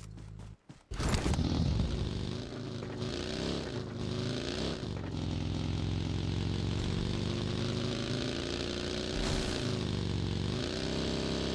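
A buggy engine revs as it drives along.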